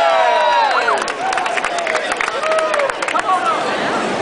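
Hands clap sharply in a crowd.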